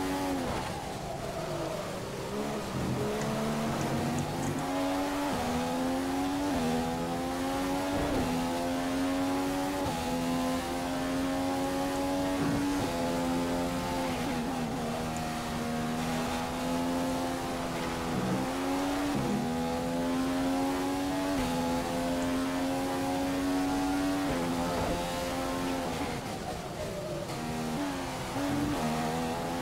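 A racing car engine screams, revving up through the gears and dropping in pitch on each shift.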